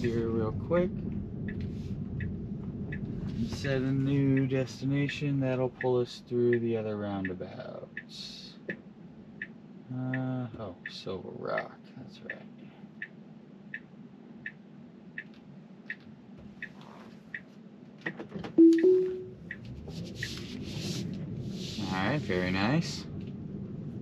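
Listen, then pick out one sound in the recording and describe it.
A man talks calmly close by inside a car.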